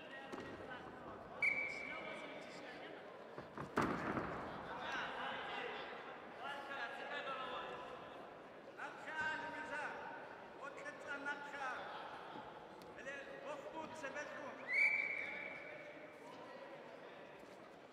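Spectators shout and cheer loudly in a large echoing hall.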